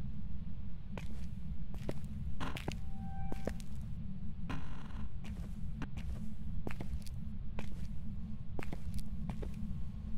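Footsteps fall on a hard floor.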